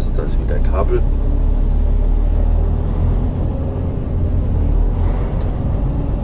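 A vehicle engine rumbles steadily and low while driving.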